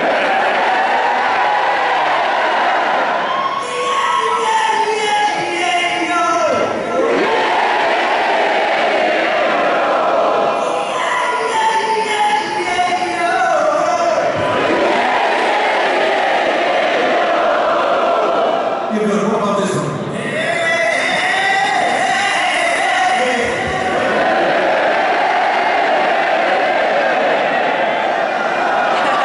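A second man sings backing vocals through a microphone.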